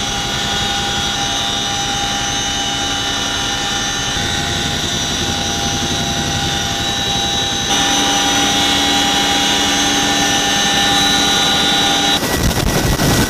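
A helicopter's engine and rotors roar and whine steadily from inside the cabin.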